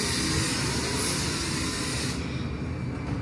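A gas torch hisses loudly, then stops.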